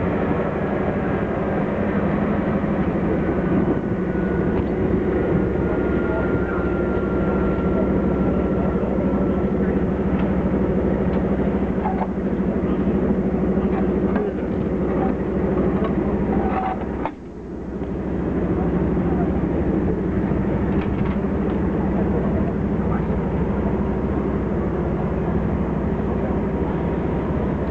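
A diesel locomotive engine idles with a steady low rumble.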